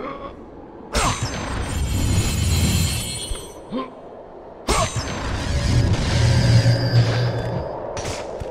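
A treasure chest bursts open with a bright magical whoosh.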